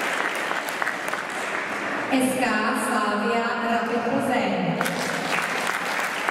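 A crowd of young girls cheers and shouts.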